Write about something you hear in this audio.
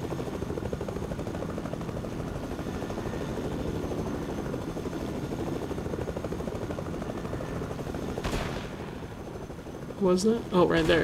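A helicopter's rotor chops steadily.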